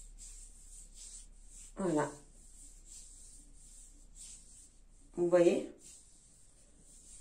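Hands rub lotion softly onto skin.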